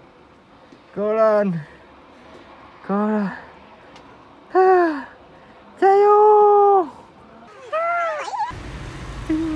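A young woman calls out loudly in long, drawn-out sung notes, outdoors.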